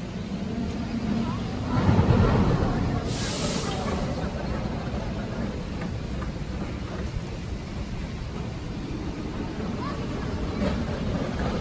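A roller coaster train roars along its track.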